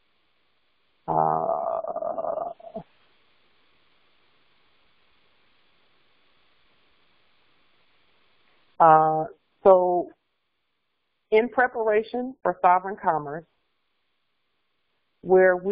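A woman speaks calmly into a microphone, reading out in pauses.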